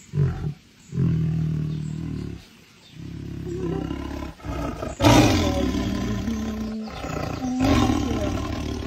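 A large cat growls and roars deeply, close by.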